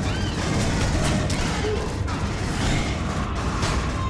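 A creature shrieks up close.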